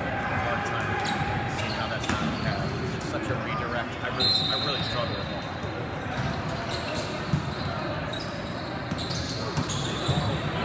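Sneakers squeak sharply on a court floor in a large echoing hall.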